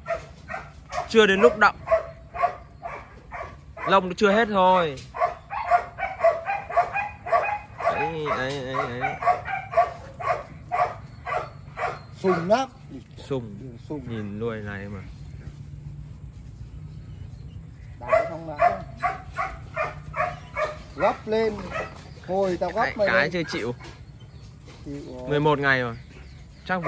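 Two dogs growl and snarl as they wrestle playfully.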